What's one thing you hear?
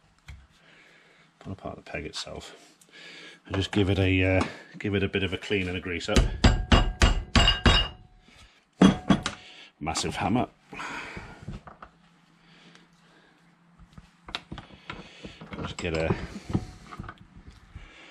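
Metal tools clink and tap against a vise.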